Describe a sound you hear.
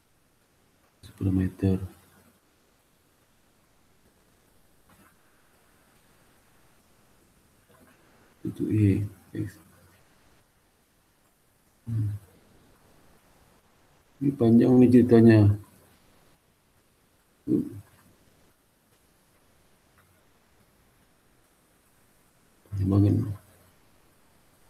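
A young man speaks calmly in short bursts over an online call.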